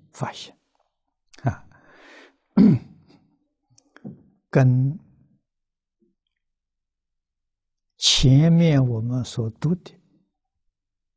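An elderly man speaks calmly in short phrases with pauses, close to a microphone.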